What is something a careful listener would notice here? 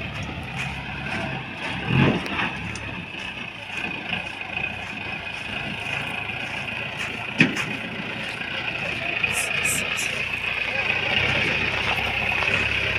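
A pickup truck engine runs as the truck drives slowly nearby.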